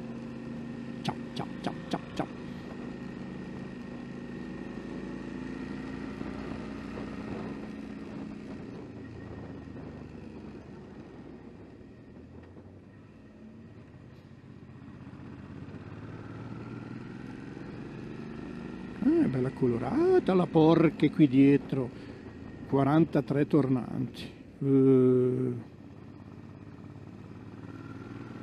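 A motorcycle engine hums steadily at a low pitch.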